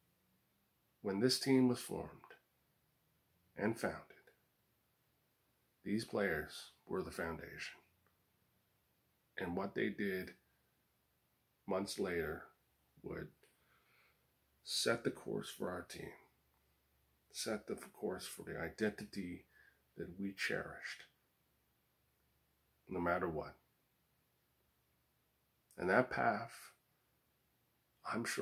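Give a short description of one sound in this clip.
A man talks calmly and close by, in short phrases with pauses.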